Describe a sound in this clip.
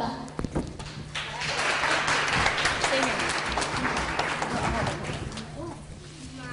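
A young girl speaks into a microphone.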